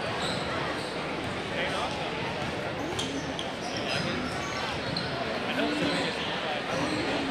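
A crowd chatters loudly in a large echoing gym.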